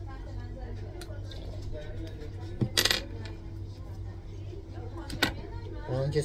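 Small plastic parts of a syringe click and snap close by.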